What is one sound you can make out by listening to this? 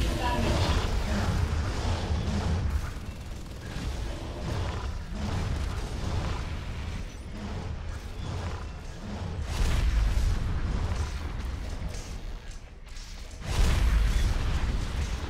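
Video game gunfire and effects rumble and crackle.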